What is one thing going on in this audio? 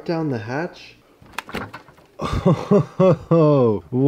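A refrigerator door opens.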